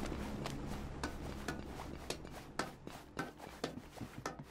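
Footsteps run on gravel.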